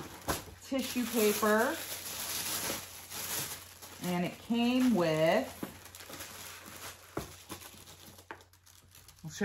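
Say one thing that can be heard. Tissue paper rustles and crinkles as it is handled.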